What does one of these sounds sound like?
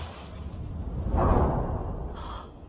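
A car crashes hard into a wall.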